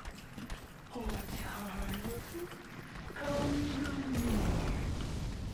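A man talks through a microphone with animation.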